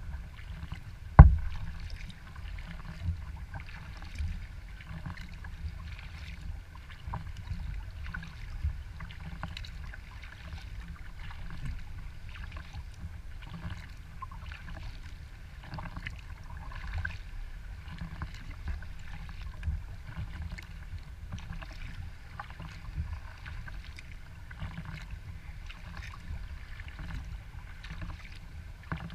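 Small waves lap and splash gently against a kayak's hull.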